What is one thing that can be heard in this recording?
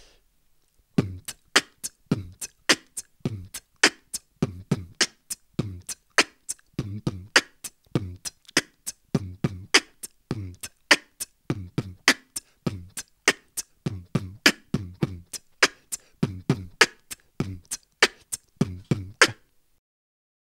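A young man beatboxes close to a microphone in a quick, steady rhythm of punchy kicks and sharp snares.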